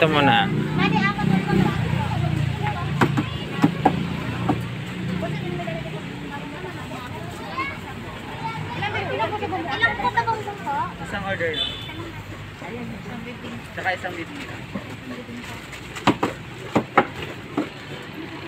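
Men and women chatter nearby in a busy outdoor crowd.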